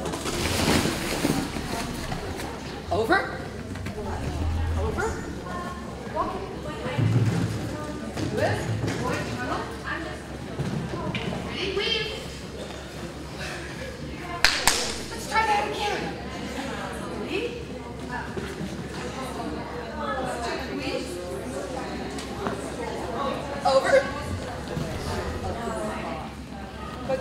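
A woman calls out commands to a dog with animation in a large echoing hall.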